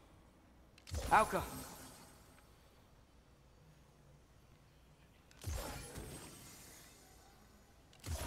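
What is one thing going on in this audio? Magical bursts whoosh and crackle loudly.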